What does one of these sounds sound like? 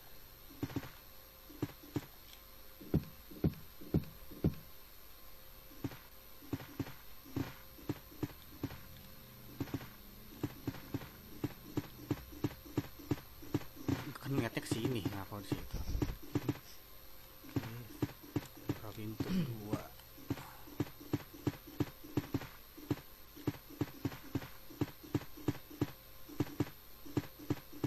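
Footsteps tap steadily across a hard floor.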